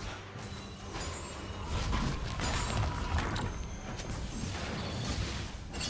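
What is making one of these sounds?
Game spell effects crackle and thud in quick bursts.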